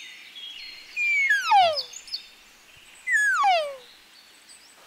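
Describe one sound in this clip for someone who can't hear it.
An elk bugles twice with a high, shrill whistle that slides down.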